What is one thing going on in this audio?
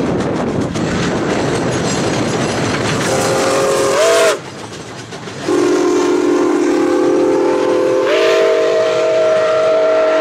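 Train wheels clatter and rumble along the rails.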